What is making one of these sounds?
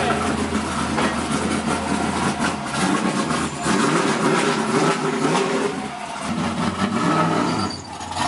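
A car engine idles with a deep rumble.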